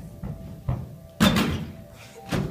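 A girl's feet thump onto a padded mat.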